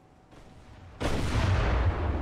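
Heavy ship guns fire with a deep, rumbling boom.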